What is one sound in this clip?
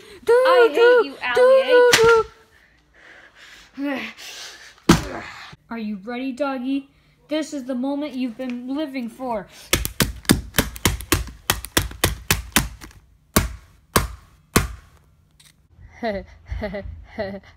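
A boy talks with animation close by.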